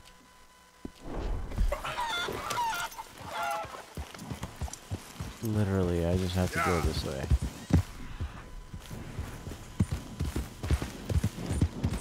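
A horse gallops, its hooves thudding on soft ground.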